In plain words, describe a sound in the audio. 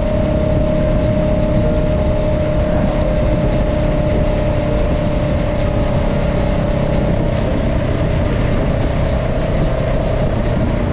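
A parallel-twin cruiser motorcycle engine hums, cruising at steady speed.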